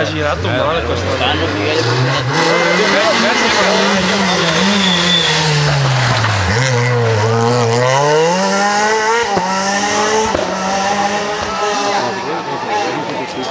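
A rally car engine roars and revs hard as the car approaches and speeds past.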